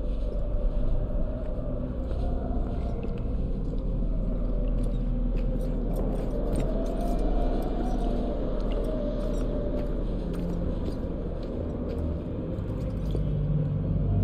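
Footsteps echo slowly on a hard floor.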